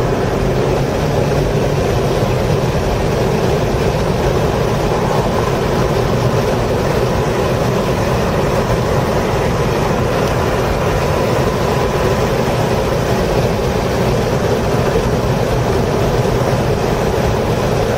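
A car engine roars loudly at high revs, heard from inside the car.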